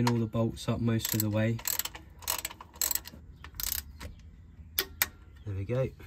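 A ratchet wrench clicks sharply as a bolt is tightened.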